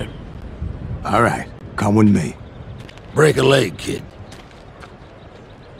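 An elderly man speaks slowly.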